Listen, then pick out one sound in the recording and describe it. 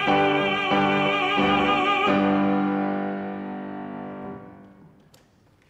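A man sings loudly in an operatic voice and holds a final note in an echoing hall.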